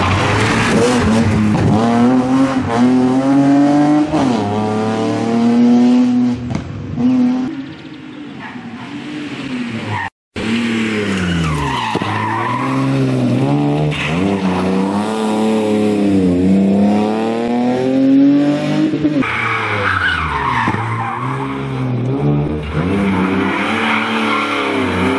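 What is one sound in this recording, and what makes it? An inline-six rally car engine revs hard through the gears as the car passes at speed.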